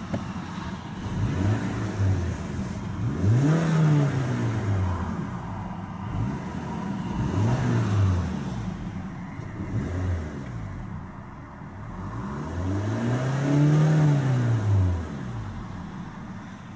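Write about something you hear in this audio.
A car engine revs up and falls back again and again.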